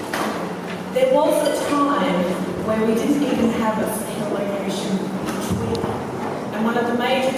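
Young women chat and laugh close by.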